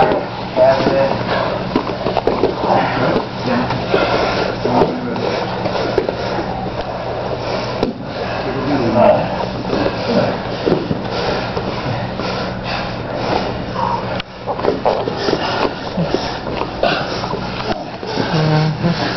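Bodies shift and thump on a padded mat.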